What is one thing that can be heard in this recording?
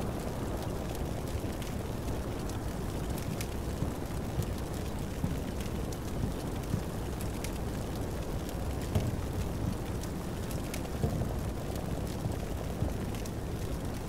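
A low, steady rumble carries on throughout.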